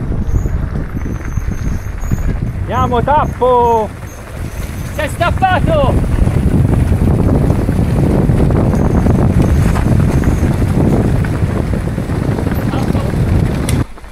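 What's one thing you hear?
Bicycle tyres crunch and rattle over a gravel trail.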